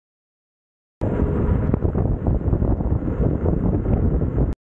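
Wind rumbles loudly against the microphone outdoors.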